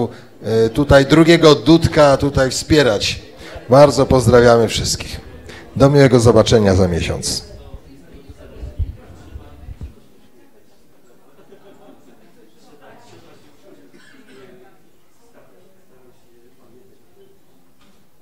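A group of men sing together through microphones, loud at first and then much softer.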